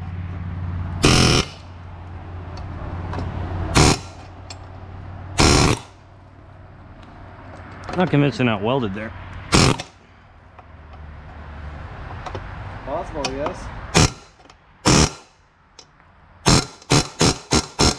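An air impact wrench rattles in short, loud bursts.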